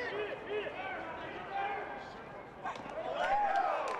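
A baseball smacks into a leather glove.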